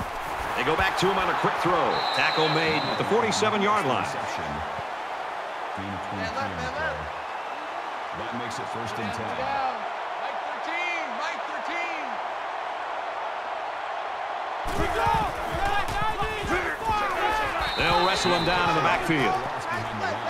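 Football players collide with thudding hits.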